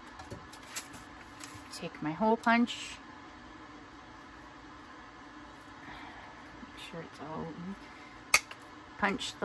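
A metal hand punch clicks as it is squeezed shut.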